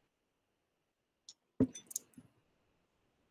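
A young man sips a drink from a glass.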